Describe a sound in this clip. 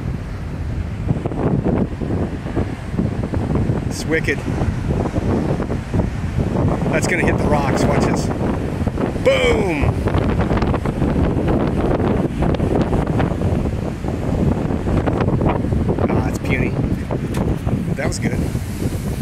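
Waves crash and roar against rocks outdoors.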